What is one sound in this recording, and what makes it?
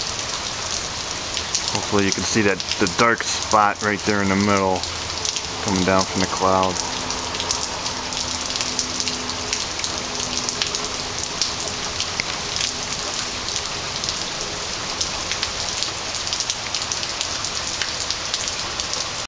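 Wind gusts steadily through the trees outdoors.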